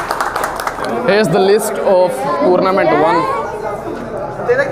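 Several men and women chat loudly nearby.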